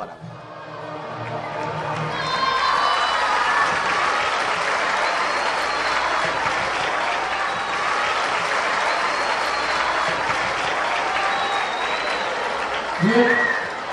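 A crowd of children shouts and cheers excitedly close by.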